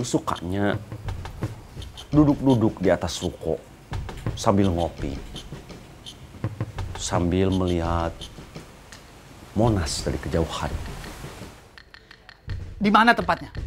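An older man speaks firmly close by.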